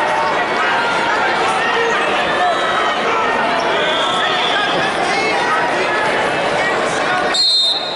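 A large crowd murmurs and calls out in an echoing arena.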